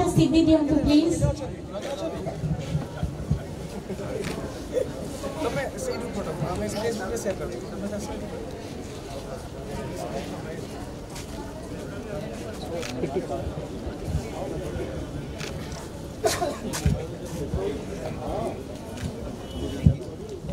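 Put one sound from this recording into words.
Young men chatter and laugh together in a noisy crowd.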